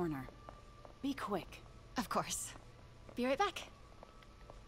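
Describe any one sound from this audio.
A second woman answers briefly.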